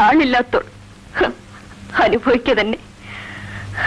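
A woman speaks tearfully and with emotion.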